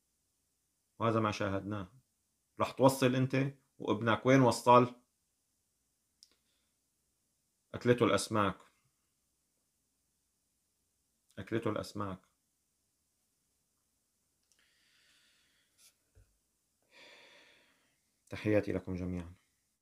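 A man speaks calmly into a nearby microphone, with pauses.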